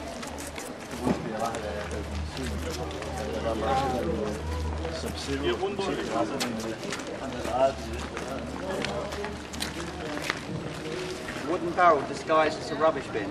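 A man talks nearby in a relaxed voice.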